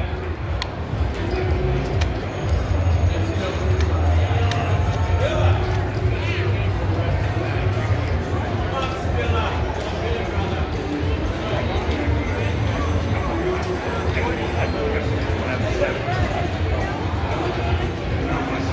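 A crowd of people chatter all around in a large echoing hall.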